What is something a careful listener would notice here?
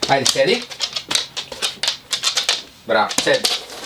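A dog's claws tap on a wooden floor as it walks.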